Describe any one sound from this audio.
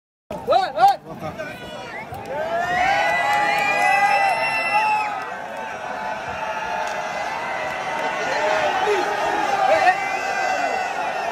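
A large crowd outdoors chants and cheers loudly.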